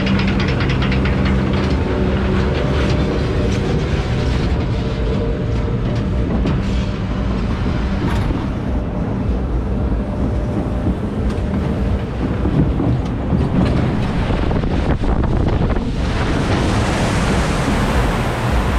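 Wind buffets loudly against the moving ride.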